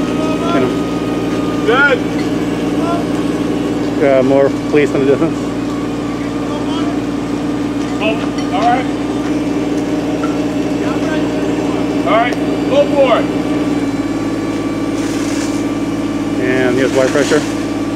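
A firework fountain hisses and crackles steadily outdoors.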